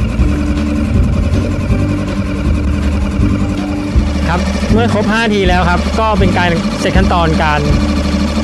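An outboard engine runs with a steady low hum.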